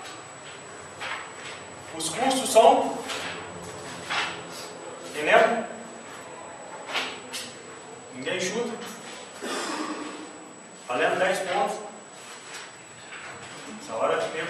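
A young man speaks calmly, as if lecturing.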